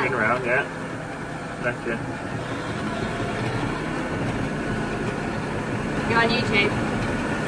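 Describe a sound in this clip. A tractor engine hums steadily inside a closed cab.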